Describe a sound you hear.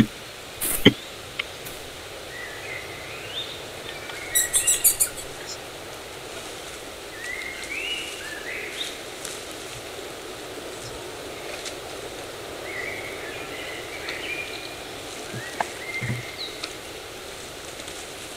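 A young man talks quietly close to a microphone.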